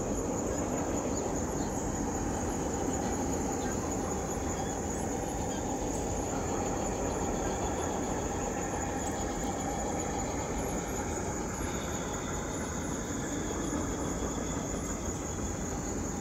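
A small model train rumbles and clatters along its track outdoors.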